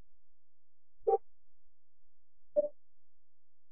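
A short electronic menu blip sounds twice.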